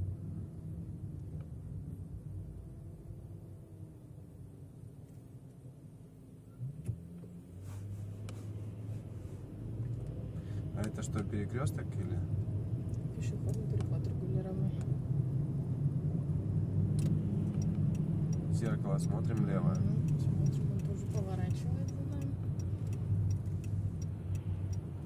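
A car engine hums steadily from inside the car as it drives along a road.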